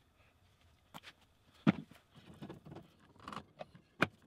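Wooden boards knock together as they are stacked.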